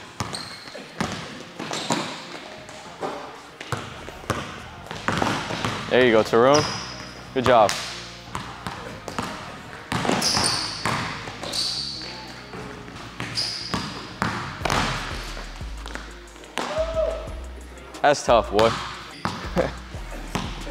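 A basketball bounces rapidly on a wooden floor.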